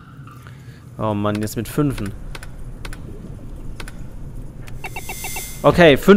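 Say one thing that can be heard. Electronic keypad buttons beep as they are pressed.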